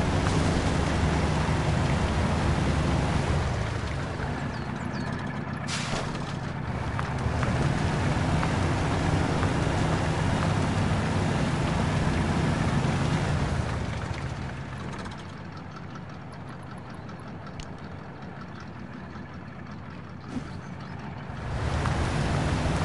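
An off-road truck engine rumbles and strains loudly.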